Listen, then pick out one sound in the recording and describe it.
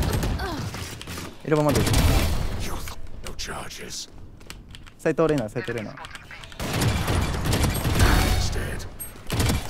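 A rifle fires bursts of rapid shots.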